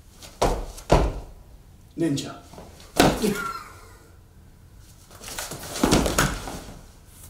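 Sneakers squeak and thud on a hard floor.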